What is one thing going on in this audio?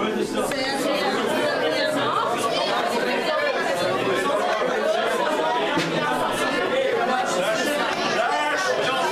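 A crowd of children and adults chatters loudly in an echoing hall.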